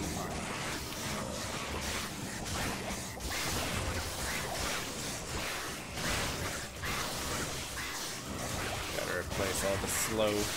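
A young man talks into a microphone with animation, close by.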